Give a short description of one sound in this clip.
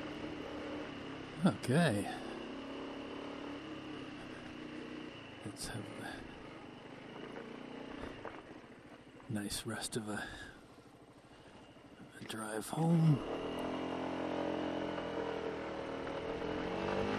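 A scooter engine hums steadily and revs up and down.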